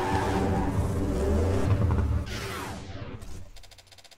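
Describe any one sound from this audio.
A car engine roars loudly at high revs, then fades away.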